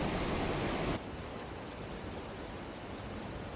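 A river flows and gurgles.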